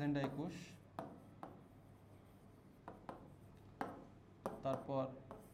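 A pen taps and scratches on a board.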